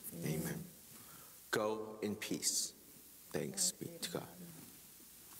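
A young man speaks calmly through a microphone in an echoing room.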